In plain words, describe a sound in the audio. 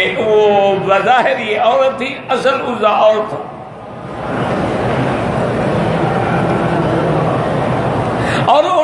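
An elderly man preaches with animation through a microphone, in a large echoing space.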